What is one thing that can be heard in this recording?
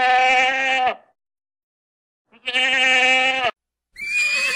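A goat bleats loudly.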